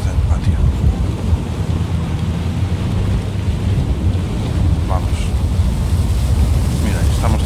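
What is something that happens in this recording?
A strong storm wind roars steadily and low.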